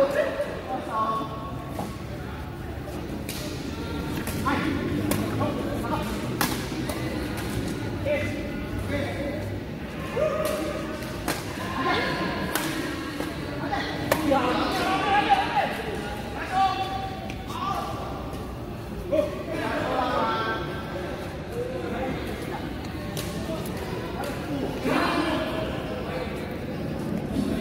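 Men talk and laugh with animation.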